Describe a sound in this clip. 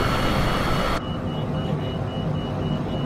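Jet engines hum more muffled from inside a cabin.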